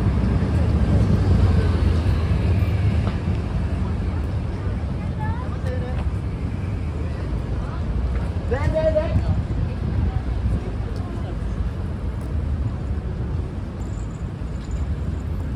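City traffic rumbles steadily nearby, outdoors.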